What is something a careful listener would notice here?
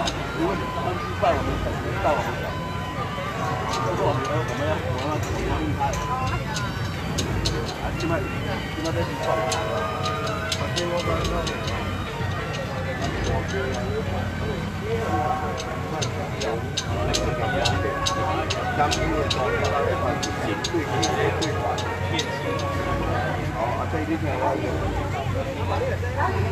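A crowd of people talks outdoors.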